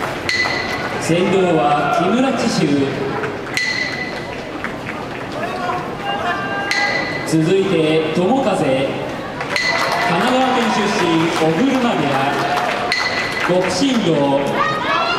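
A man calls out in a long, drawn-out singing chant that echoes through a large hall.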